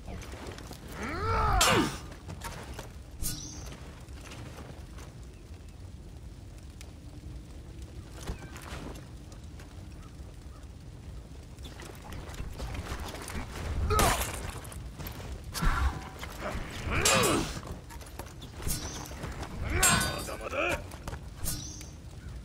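Metal blades clash and ring sharply.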